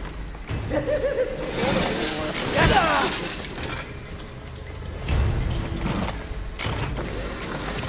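A chainsaw engine idles and revs with a rough, buzzing drone.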